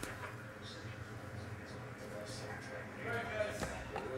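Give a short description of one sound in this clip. A plastic card case clicks and rattles in hands.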